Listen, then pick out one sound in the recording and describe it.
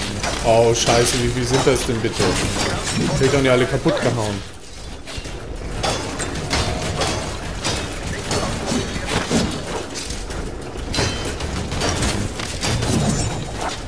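Metal blades swing and clash.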